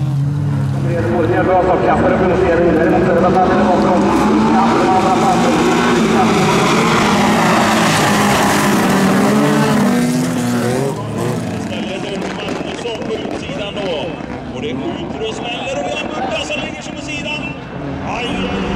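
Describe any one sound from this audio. Racing car engines roar and rev loudly.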